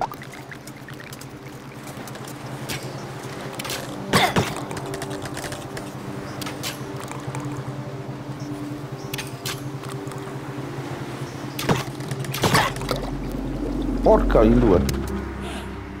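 A small boat splashes through water.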